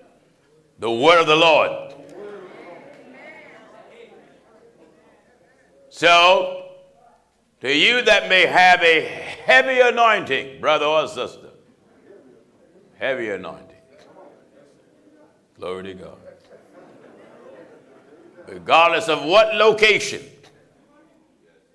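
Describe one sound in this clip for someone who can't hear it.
A man preaches with animation into a microphone, his voice echoing in a large hall, with long pauses between phrases.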